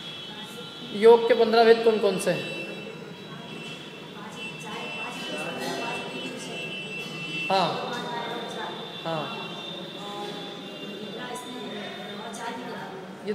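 A man sings close to a microphone.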